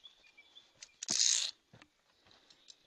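Metal carabiners clink against a steel cable.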